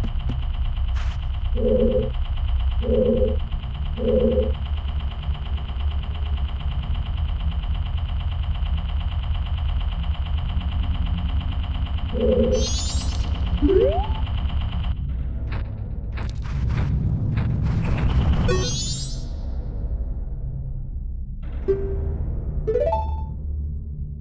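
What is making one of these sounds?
A video game's low, droning music plays steadily.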